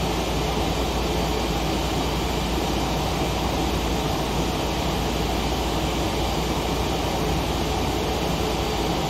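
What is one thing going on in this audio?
Jet engines drone steadily with a constant rush of air.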